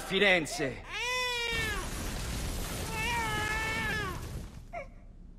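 A newborn baby cries.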